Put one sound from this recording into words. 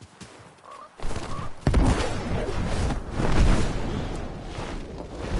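Large wings flap.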